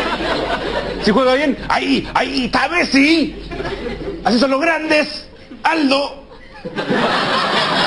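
A young man speaks with animation into a microphone.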